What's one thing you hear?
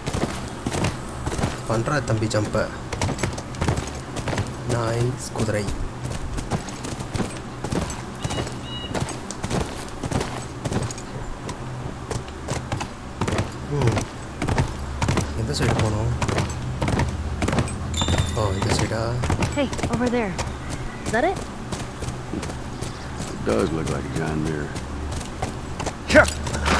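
A horse's hooves clop steadily on the ground.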